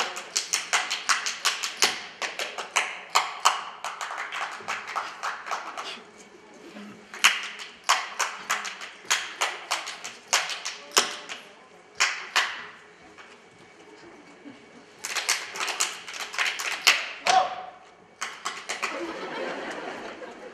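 Dancers' boots stamp and slap sharply in quick rhythm on a stage.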